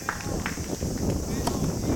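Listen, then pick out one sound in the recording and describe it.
A tennis racket strikes a ball outdoors.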